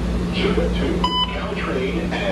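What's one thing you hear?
A card reader gives a short electronic beep.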